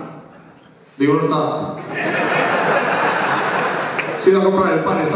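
A young man speaks with animation into a microphone, heard through loudspeakers in a large hall.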